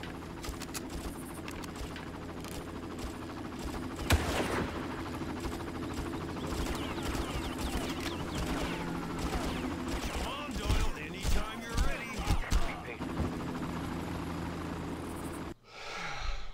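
A helicopter's rotors drone steadily.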